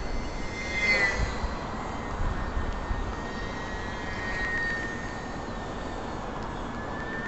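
A model airplane's electric motor whines steadily, rising and falling in pitch.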